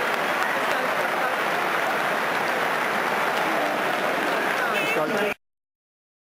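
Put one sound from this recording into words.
A large stadium crowd roars and chatters steadily in the open air.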